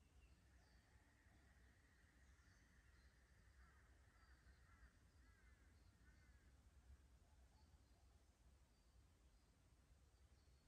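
Water trickles gently over stones in a shallow creek.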